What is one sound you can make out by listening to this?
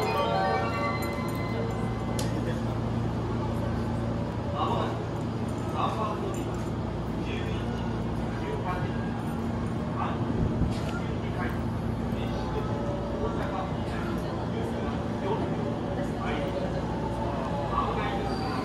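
A stopped train hums steadily nearby.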